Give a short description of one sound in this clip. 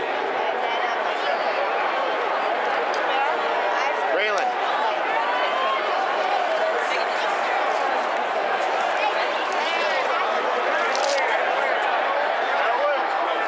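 Nearby spectators shout and whoop close by.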